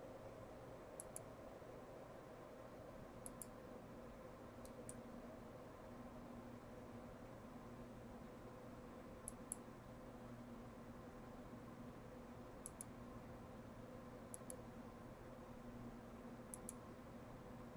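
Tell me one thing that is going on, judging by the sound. Sharp metallic clinks of a sword striking come in pairs every few seconds.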